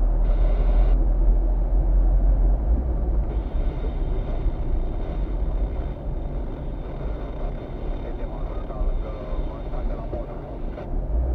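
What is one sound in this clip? Tyres roll on a wet road with a low rumble.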